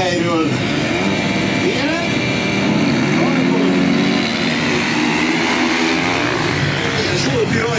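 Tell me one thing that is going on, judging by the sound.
Motorcycles roar away and race past close by.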